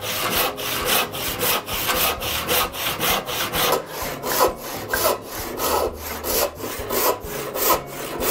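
A hand saw cuts through wood with quick, rhythmic rasping strokes.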